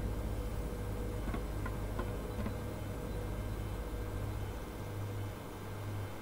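A lift platform hums with a steady low drone.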